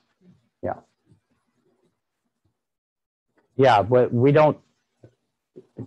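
An elderly man speaks calmly, close by, with pauses.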